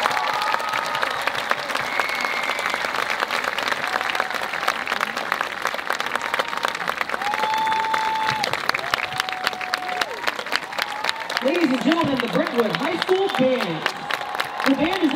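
Spectators whistle loudly.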